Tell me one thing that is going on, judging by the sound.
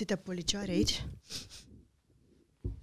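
A woman talks calmly into a microphone.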